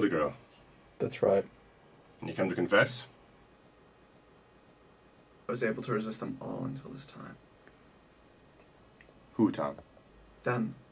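A young man speaks quietly and tensely nearby.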